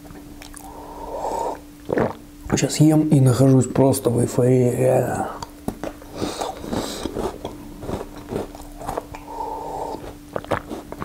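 A man sips a hot drink with a slurp.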